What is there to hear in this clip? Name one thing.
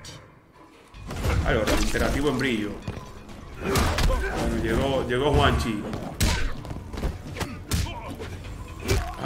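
Fighters in a game grunt and land heavy blows.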